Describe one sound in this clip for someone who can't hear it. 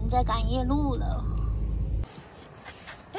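A car engine hums low while driving.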